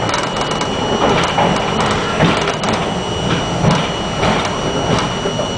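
A subway train rumbles and rattles loudly along the tracks through a tunnel.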